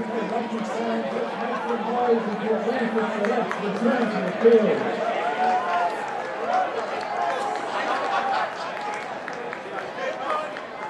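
A crowd of men and women chatter outdoors at a distance.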